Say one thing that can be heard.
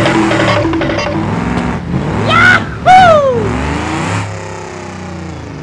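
A car engine revs and hums.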